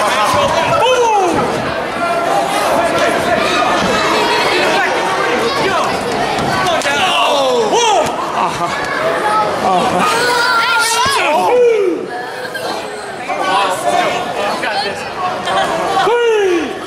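Children scream and shriek excitedly.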